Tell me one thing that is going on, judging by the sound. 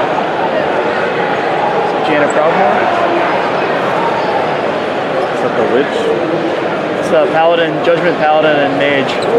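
A large crowd chatters loudly in a big echoing hall.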